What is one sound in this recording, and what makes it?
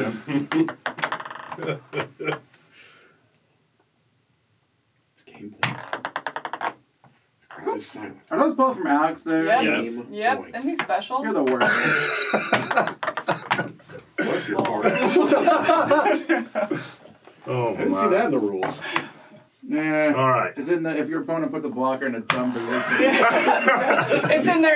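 Wooden pieces knock and slide on a wooden game board.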